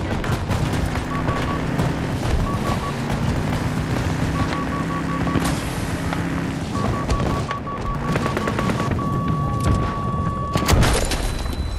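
A tank engine rumbles and roars as it drives.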